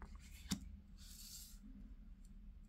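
A card slides softly across a wooden table.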